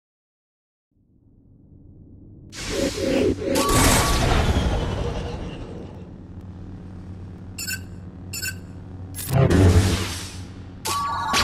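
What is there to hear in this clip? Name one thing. Lightsabers hum and clash in a game battle.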